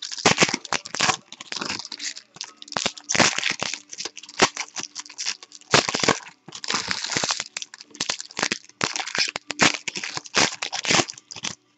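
Foil wrappers crinkle and tear as hands rip them open.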